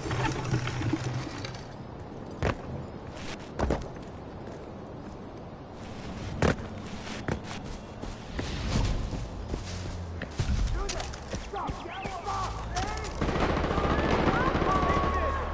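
Footsteps crunch over rock and grass.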